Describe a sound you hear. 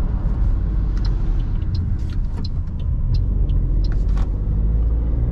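Plastic clicks and taps inside the car.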